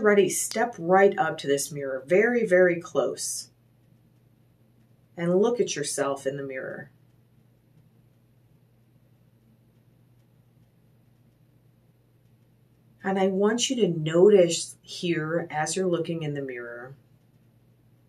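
A woman speaks calmly and slowly close to a microphone, with long pauses.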